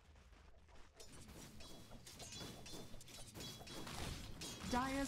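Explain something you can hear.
Game spell effects whoosh and crackle during a battle.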